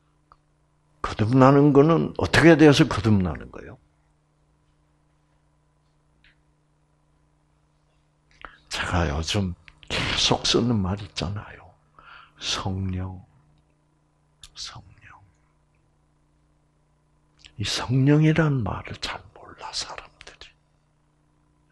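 An elderly man speaks calmly through a microphone, with pauses.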